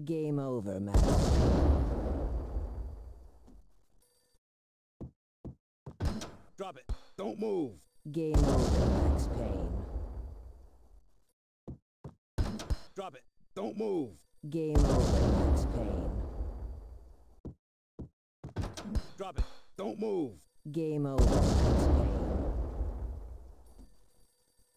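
A loud explosion booms and rumbles away slowly.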